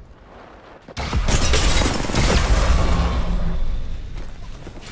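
A gun fires rapidly with loud, booming shots.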